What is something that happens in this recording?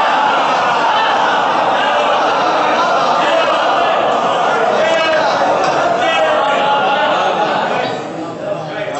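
A large crowd of men chants loudly together in an echoing hall.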